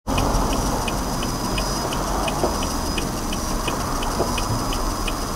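Tyres rumble on the road, heard from inside the car.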